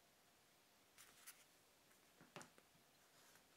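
A small wallet is set down softly on a wooden table.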